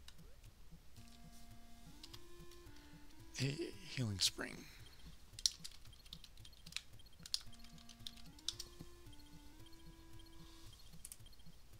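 Simple electronic game music plays in short beeping notes.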